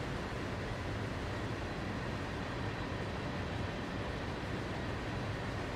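Freight trains rumble and clatter steadily over the tracks.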